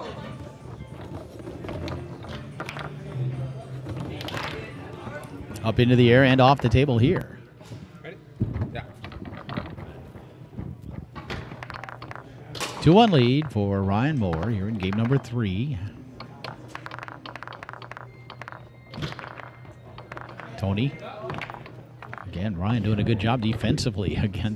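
A hard ball clacks against foosball figures and the table walls.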